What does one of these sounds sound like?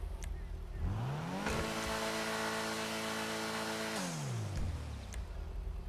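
A car engine revs up high, holds, then drops back to idle.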